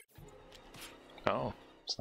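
A sharp slashing attack sound rings out.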